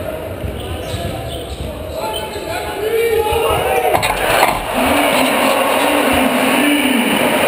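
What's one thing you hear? A large crowd cheers loudly in an echoing gym.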